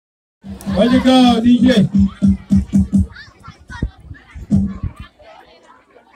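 A group of young girls chants loudly together nearby.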